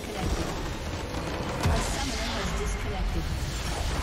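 A large crystal structure explodes with a deep boom.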